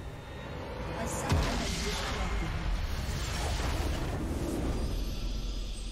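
A loud magical explosion bursts and rumbles.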